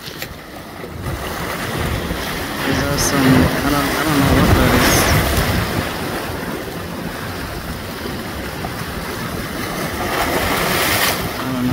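Water surges and foams loudly close by.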